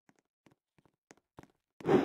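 A sword swooshes through the air.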